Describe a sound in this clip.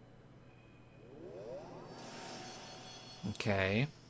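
A magical burst whooshes and shimmers.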